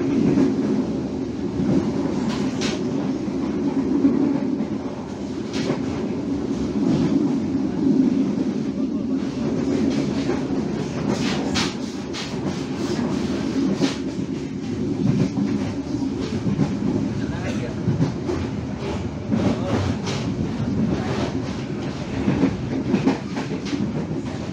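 Train wheels clatter and click over rail joints.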